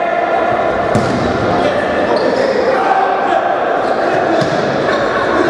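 A ball thumps as players kick it.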